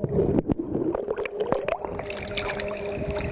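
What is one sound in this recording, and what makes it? Water splashes at the surface.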